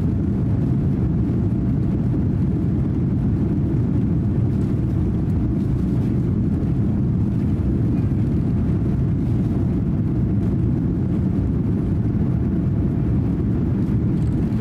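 An airliner rumbles as it speeds down a runway.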